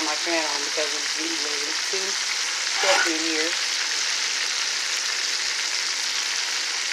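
Hot oil sizzles and bubbles steadily around frying food.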